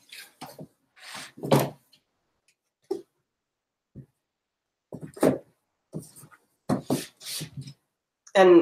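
Books thump onto a shelf.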